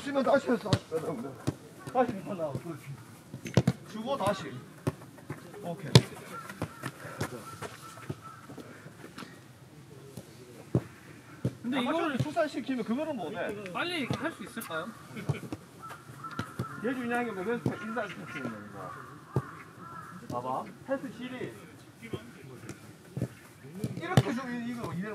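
Men shout and call out to each other outdoors.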